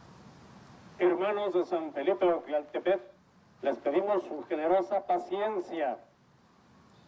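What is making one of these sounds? A woman announces through a horn loudspeaker, sounding tinny and distorted.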